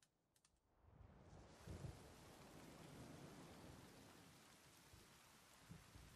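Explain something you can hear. Rain falls steadily outdoors.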